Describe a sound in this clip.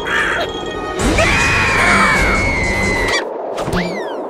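A cartoon creature yells in a high, squeaky voice.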